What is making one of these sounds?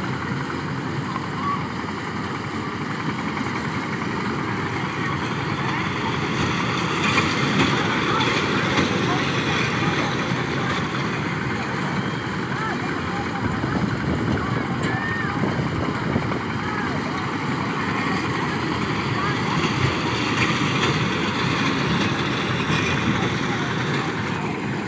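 Small ride cars rumble along metal tracks.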